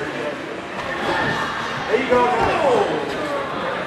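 A grappler's body thuds onto a mat.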